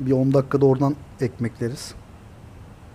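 A man speaks briefly into a close microphone with animation.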